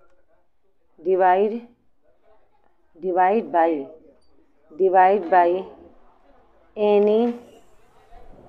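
A woman speaks in short, drawn-out phrases.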